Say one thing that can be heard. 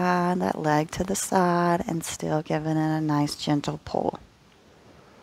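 A woman speaks calmly and softly into a close microphone.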